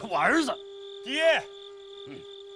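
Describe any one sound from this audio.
A young man answers sharply.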